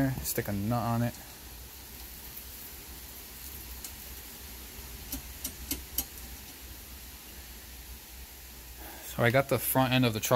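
A small plastic part clicks and rattles as a hand handles it.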